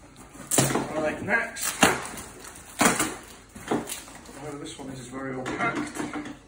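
Paper and cardboard rustle and crinkle as a parcel is torn open close by.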